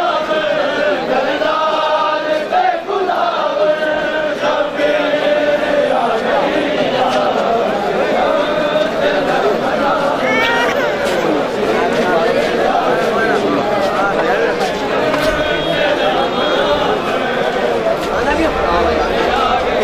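A large crowd of men chants loudly together outdoors.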